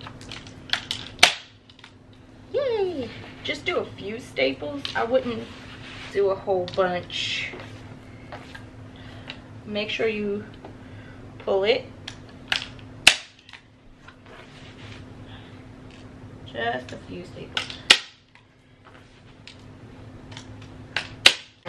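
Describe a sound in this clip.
A staple gun snaps sharply several times.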